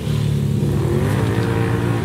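ATV tyres churn through water.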